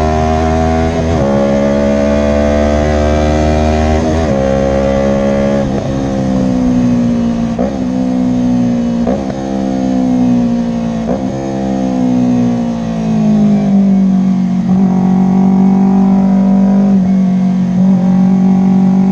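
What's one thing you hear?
A motorcycle engine roars loudly, revving up and dropping with each gear change.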